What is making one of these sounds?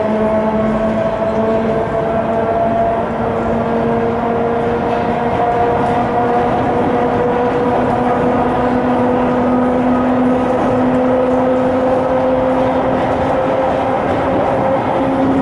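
An electric train rumbles along the tracks with a steady roar.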